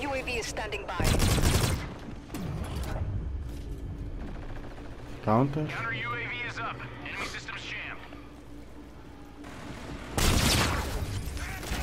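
Gunfire rattles in short, loud bursts.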